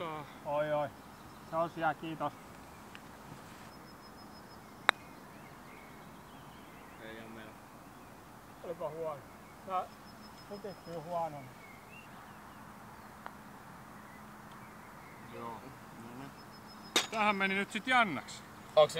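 Men talk casually outdoors, nearby and farther off.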